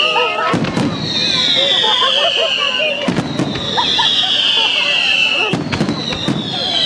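Fireworks bang and boom in quick bursts outdoors.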